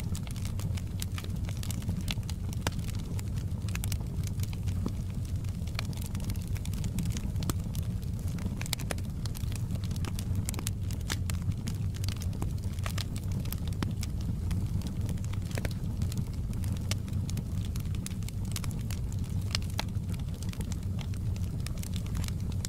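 Logs crackle and pop in a fire.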